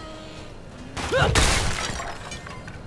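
A heavy blow lands with a loud crash and a rumbling boom.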